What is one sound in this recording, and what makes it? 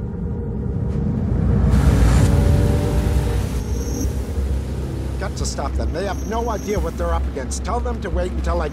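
A car engine roars as the car speeds along a road.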